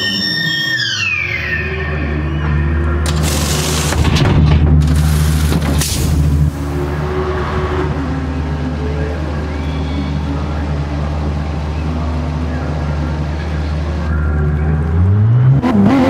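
A race car engine idles with a deep, steady rumble.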